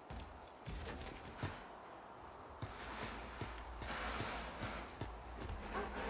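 A figure climbs a wooden ladder with creaking knocks.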